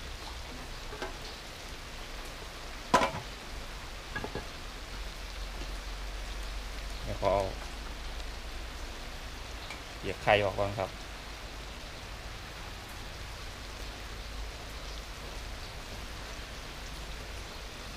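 A gas burner roars steadily under a wok.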